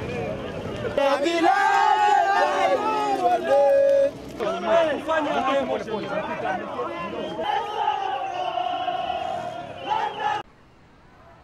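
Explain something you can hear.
A crowd shouts and chants loudly outdoors.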